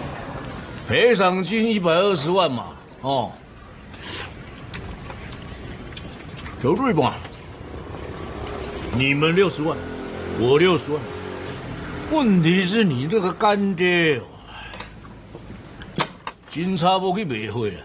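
A middle-aged man speaks in a low, firm voice.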